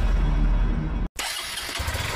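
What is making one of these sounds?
A motorcycle engine revs.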